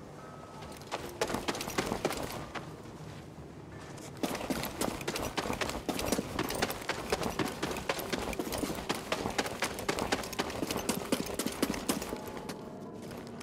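Quick footsteps run and crunch over loose rubble.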